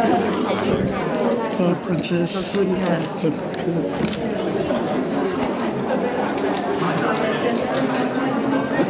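A crowd of men and women chatter loudly nearby in a room.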